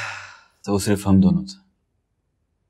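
A young man speaks with a wry, sighing tone, up close.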